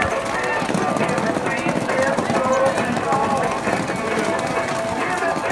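Young riders shout and call out to one another outdoors.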